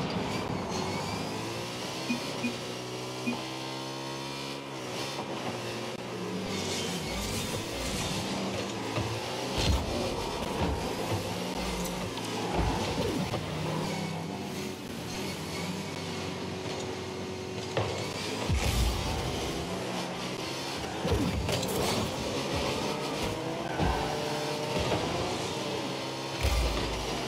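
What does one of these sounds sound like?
A car engine hums and revs steadily.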